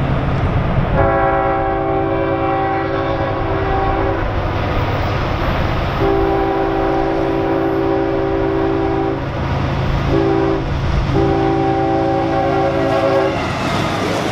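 A locomotive horn blows in several long blasts, from a distance and then closer.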